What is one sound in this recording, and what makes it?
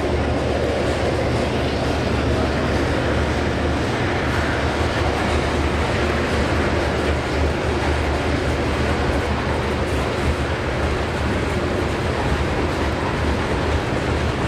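A long freight train rumbles steadily past on the rails, close by.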